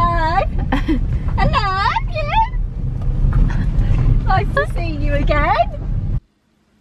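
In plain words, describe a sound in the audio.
A young girl calls out with excitement close by.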